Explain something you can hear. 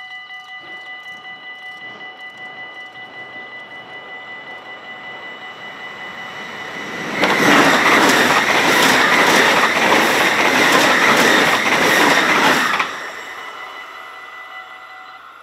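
A level crossing bell rings steadily and quickly.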